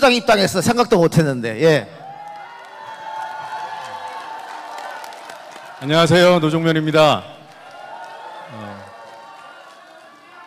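A middle-aged man speaks into a microphone over loudspeakers in a large hall.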